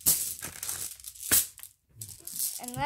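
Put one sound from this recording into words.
Glass marbles clatter into a plastic tub.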